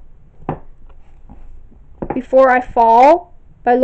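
A book slides against other books on a shelf.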